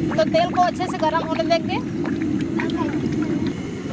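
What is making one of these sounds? Oil pours into a metal pan.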